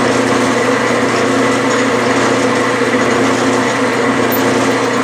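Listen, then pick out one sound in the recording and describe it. A drill bit grinds into spinning metal with a steady scraping whir.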